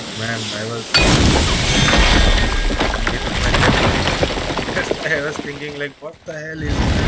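A heavy stone slab shatters and crumbles, debris clattering down.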